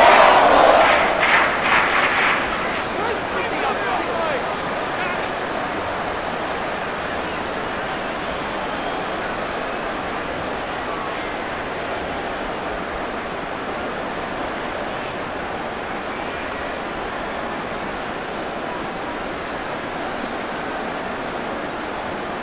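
A large stadium crowd roars loudly at first, then settles into a steady murmur.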